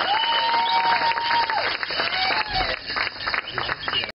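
People clap and slap hands.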